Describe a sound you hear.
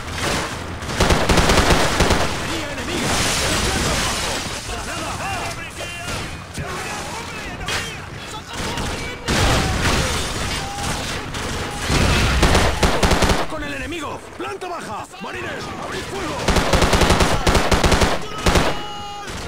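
A rifle fires in rapid, loud bursts.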